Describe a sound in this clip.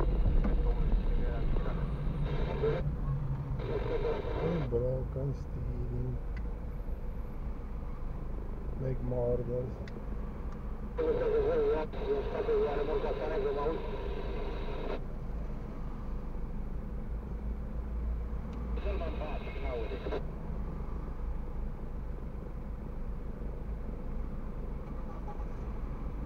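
A car engine hums low inside the cabin.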